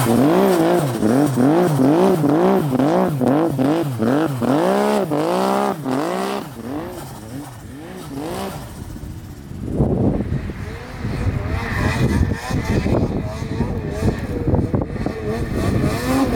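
A snowmobile engine roars as it churns through deep snow.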